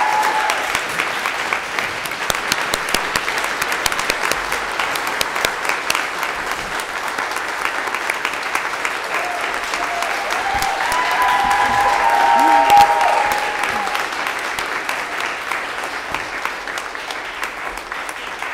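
A crowd applauds in a large echoing room, and the clapping slowly fades.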